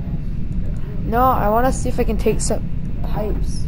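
A teenage boy speaks calmly into a close microphone.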